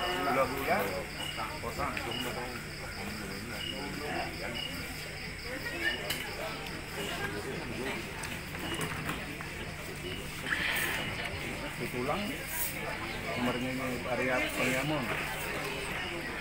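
Men chat quietly nearby.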